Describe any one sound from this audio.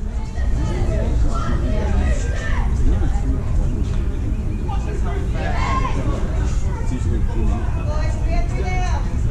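Men call out across an open field in the distance.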